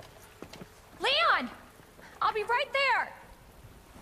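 A woman calls out loudly.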